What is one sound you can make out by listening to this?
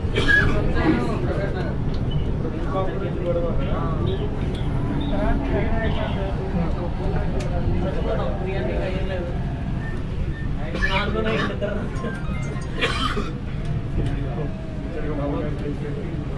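A train rumbles steadily.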